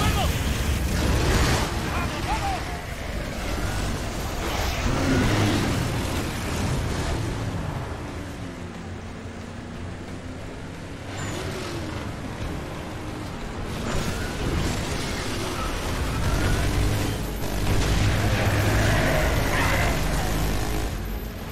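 Heavy gunfire rattles and booms.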